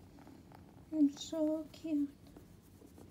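A kitten mews.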